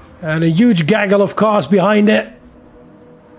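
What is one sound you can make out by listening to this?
A man talks loudly and excitedly into a close microphone.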